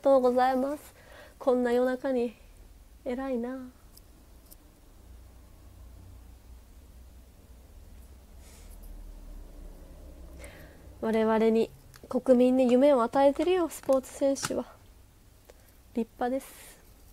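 A young woman talks softly and casually, close to a microphone.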